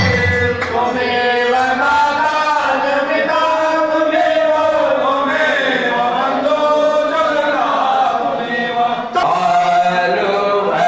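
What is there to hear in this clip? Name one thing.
A group of men sing together into a microphone, echoing in a hard-walled room.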